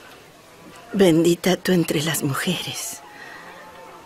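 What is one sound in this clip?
A woman answers quietly, close by.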